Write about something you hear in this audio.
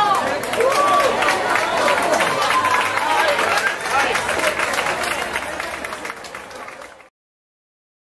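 A crowd of men and women chatter and call out nearby.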